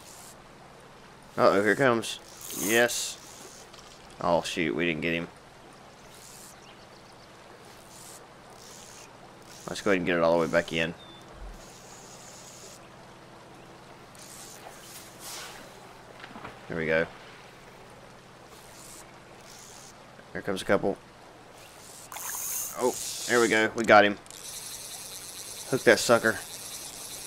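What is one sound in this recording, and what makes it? A fishing line swishes through the air as it is cast.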